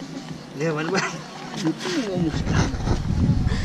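A young man talks softly up close.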